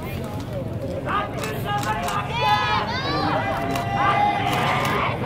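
Young men and women shout out loud, drawn-out calls.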